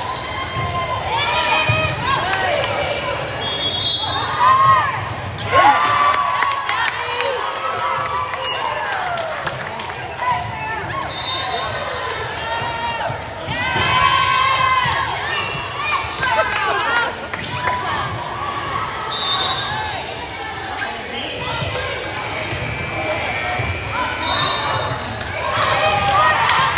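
Young women shout and cheer in a large echoing gym.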